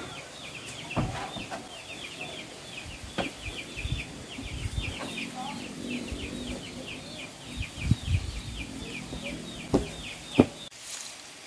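Wooden objects knock and clatter close by.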